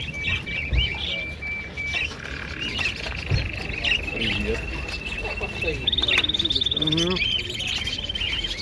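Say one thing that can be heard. Many canaries sing and trill loudly and continuously close by.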